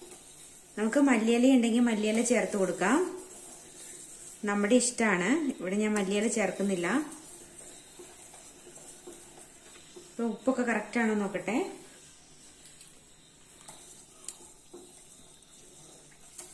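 A metal ladle stirs soup in a steel pot.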